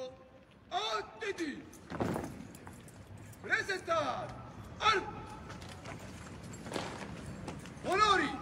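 A man shouts short drill commands across an open space.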